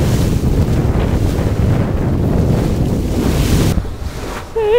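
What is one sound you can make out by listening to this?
Water splashes and rushes against a boat's hull.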